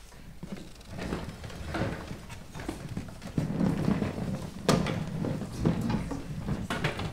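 Musicians shuffle and move chairs on a stage.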